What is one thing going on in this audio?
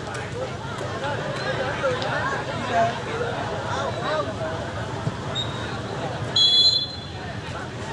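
A crowd of spectators chatters and calls out nearby.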